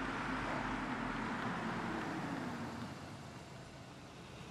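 A car engine hums while idling.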